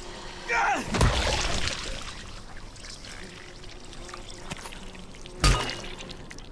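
A metal pipe strikes a body with heavy, wet thuds.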